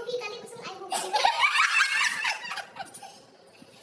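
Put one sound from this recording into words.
An older woman laughs a little further away.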